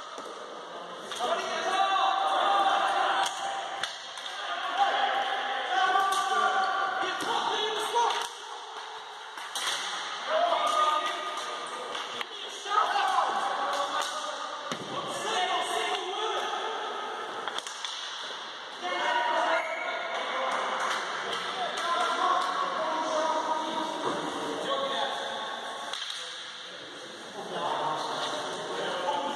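Hockey sticks clack against a ball and the hard floor.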